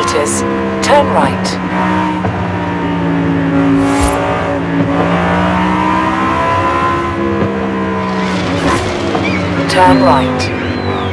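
Other cars whoosh past close by.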